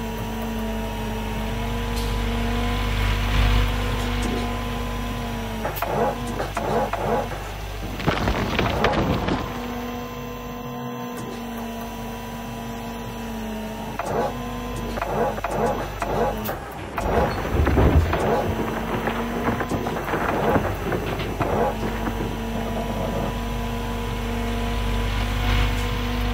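An excavator engine hums steadily.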